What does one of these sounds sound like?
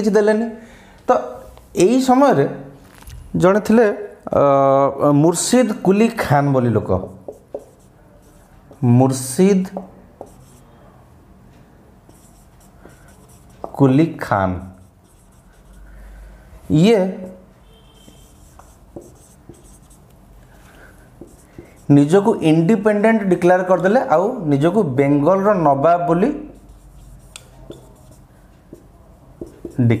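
A man lectures in a calm, clear voice close to a microphone, with pauses.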